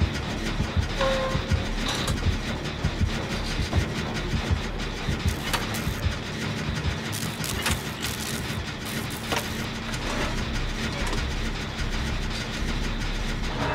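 A machine rattles and clanks while being repaired.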